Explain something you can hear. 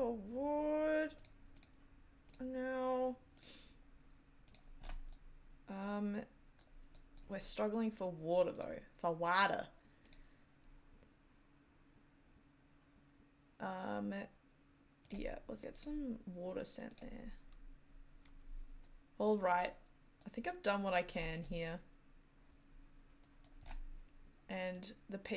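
A woman talks calmly and close to a microphone, in short bursts with pauses.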